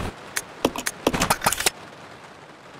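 Menu selection clicks sound in quick bursts.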